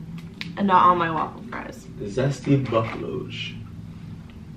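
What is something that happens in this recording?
A young woman talks and reacts close by.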